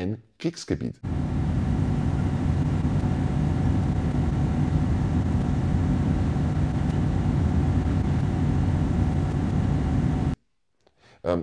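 A freight train rumbles and rolls past on the tracks.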